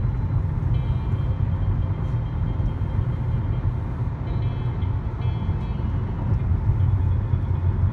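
A car's engine and tyres rumble steadily from inside the car on a highway.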